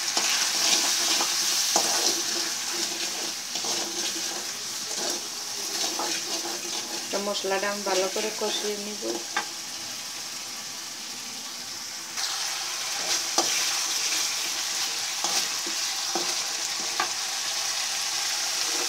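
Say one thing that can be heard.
Food sizzles in hot oil in a pan.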